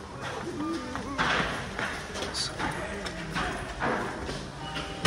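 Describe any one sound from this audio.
Footsteps scuff and thud on concrete stairs.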